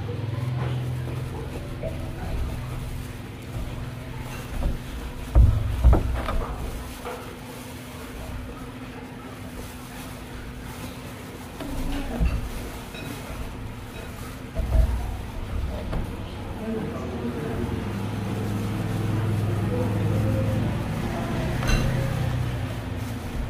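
Thin plastic gloves crinkle and rustle while mixing food.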